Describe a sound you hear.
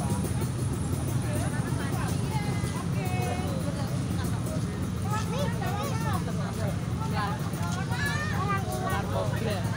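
A crowd of people talks and calls out nearby outdoors.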